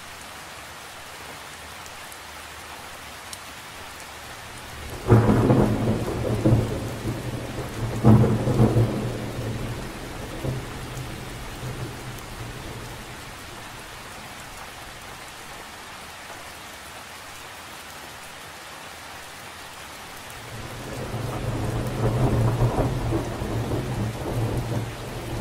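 Rain patters steadily on the surface of a lake outdoors.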